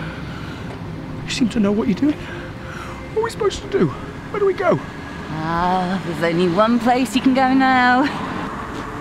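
A young woman speaks quietly and closely.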